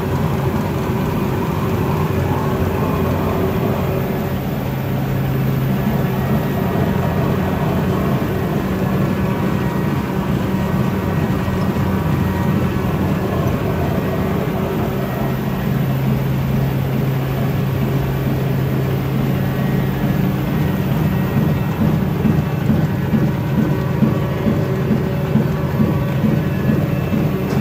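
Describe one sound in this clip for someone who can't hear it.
A train rumbles loudly and steadily somewhere below.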